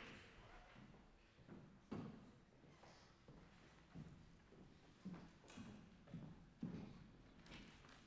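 Footsteps tap across a wooden stage.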